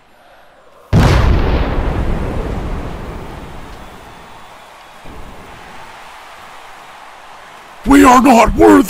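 A stadium crowd roars and slowly fades.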